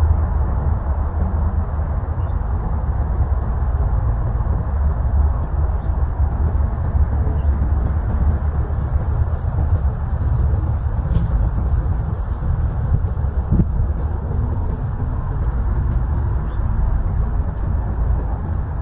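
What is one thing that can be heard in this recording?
Wind blows steadily outdoors, rumbling low and close.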